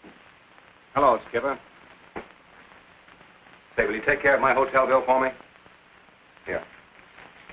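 A man speaks up close, in short bursts.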